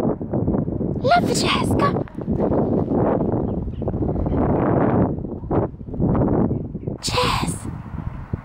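A small dog yelps briefly.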